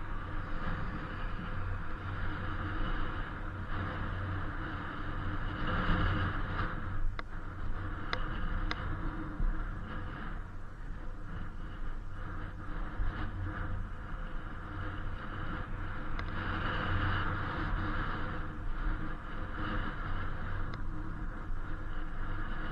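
Wind rushes past, rising and falling.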